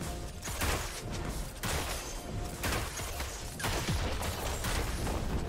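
Video game spell blasts and hits whoosh and crackle in quick bursts.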